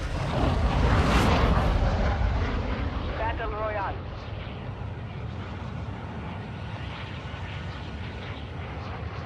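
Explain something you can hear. Jet engines of a large aircraft roar steadily.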